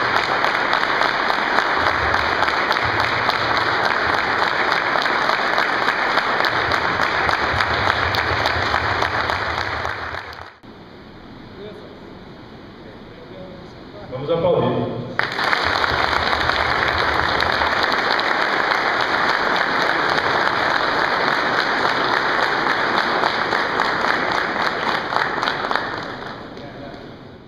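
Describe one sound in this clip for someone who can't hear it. A large crowd applauds loudly and steadily.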